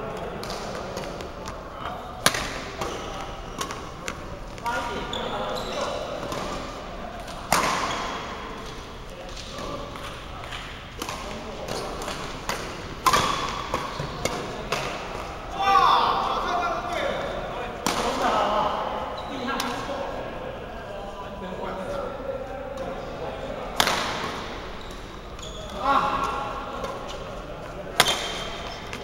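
Rackets sharply smack a shuttlecock back and forth in an echoing hall.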